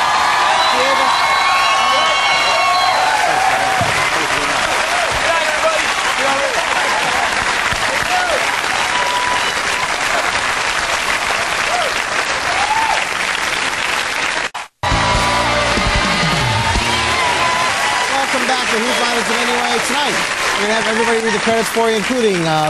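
A large studio audience applauds and cheers loudly.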